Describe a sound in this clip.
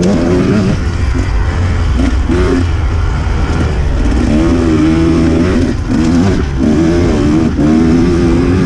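A dirt bike engine revs and drones up close, rising and falling in pitch.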